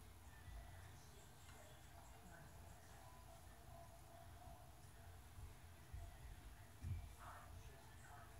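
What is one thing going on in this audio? A spoon scrapes lightly against a plate.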